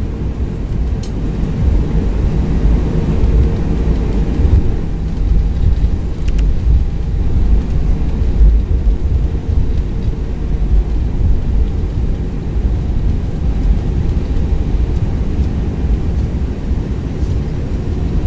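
Jet engines roar steadily with a deep rumble.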